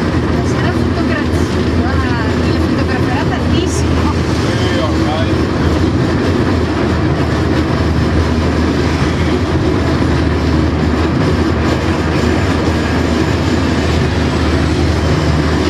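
Wheels clatter on the rails.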